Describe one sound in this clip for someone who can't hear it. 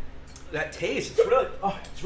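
A man laughs loudly over an online call.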